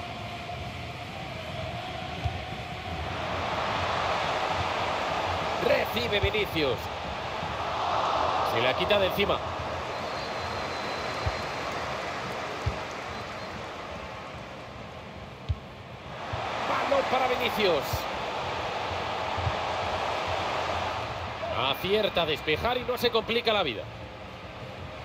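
A large stadium crowd roars and swells.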